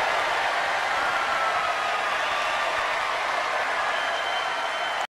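People in a crowd clap their hands.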